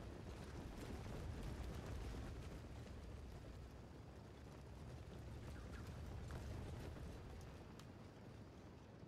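Many soldiers' footsteps tramp and rumble across the ground.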